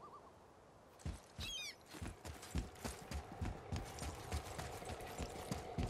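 Heavy footsteps thud quickly on stone.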